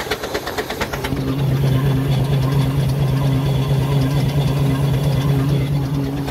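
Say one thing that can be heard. Metal running gear rattles and hums loudly up close.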